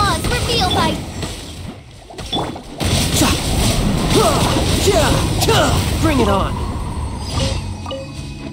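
Magical attacks crackle and burst loudly.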